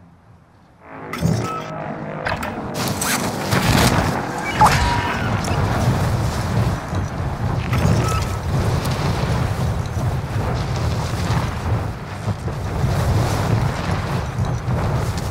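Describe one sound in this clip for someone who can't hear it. Wind rushes loudly past during a fast descent through the air.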